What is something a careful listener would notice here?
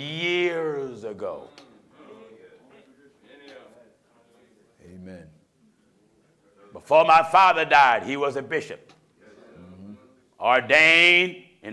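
A middle-aged man preaches forcefully into a microphone, his voice rising and falling.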